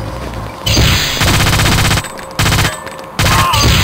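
Pistol shots fire in a rapid burst.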